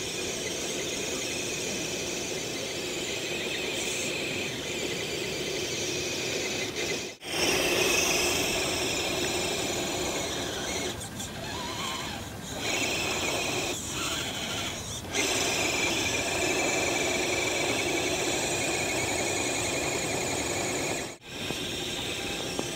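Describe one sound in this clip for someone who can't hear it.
Snow sprays and hisses under spinning tyres.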